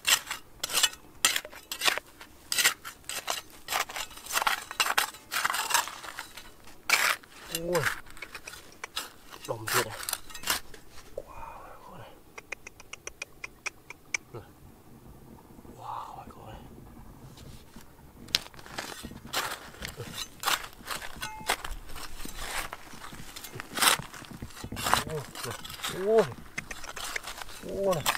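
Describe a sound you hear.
A small shovel scrapes and digs into dry, stony soil.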